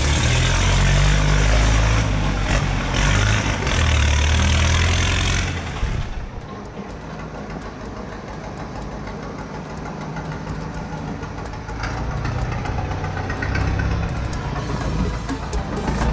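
A small tractor engine rumbles loudly up close, fades as it drives off down the street, then grows louder as it comes back.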